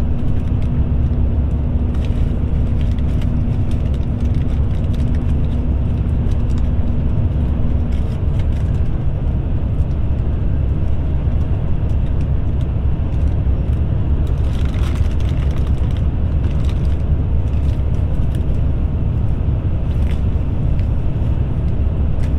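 Tyres hum on smooth pavement.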